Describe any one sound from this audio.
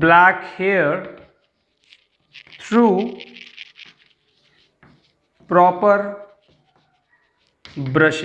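Chalk scratches on a blackboard.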